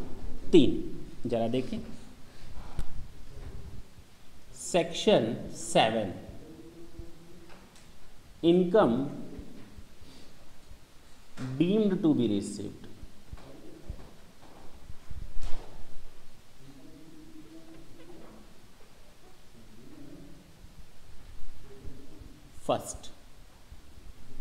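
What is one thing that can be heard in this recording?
A man speaks in a lecturing tone, close by.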